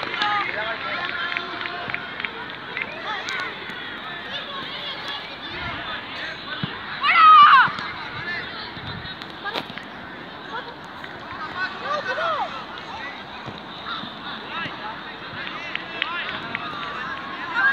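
Young players shout and call out across an open pitch outdoors.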